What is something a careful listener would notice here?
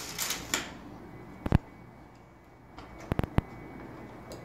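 A tape measure clicks and rattles on a hard floor.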